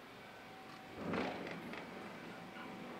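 A garage door clunks as its motor starts.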